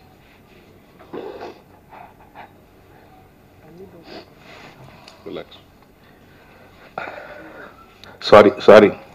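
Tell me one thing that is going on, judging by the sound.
A man sobs and speaks haltingly into a microphone.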